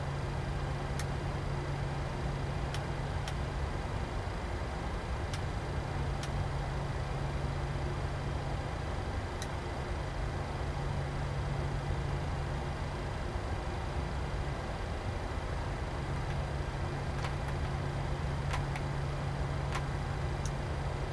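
Cockpit switches click now and then.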